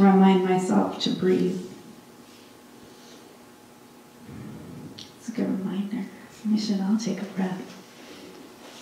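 A young woman reads aloud calmly into a microphone.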